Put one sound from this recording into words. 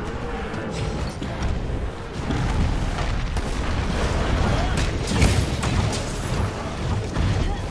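Blades clash and strike in quick blows.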